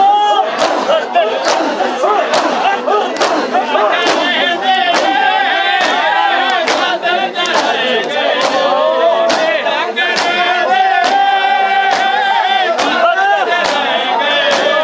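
Men beat their chests in a steady, rhythmic pounding.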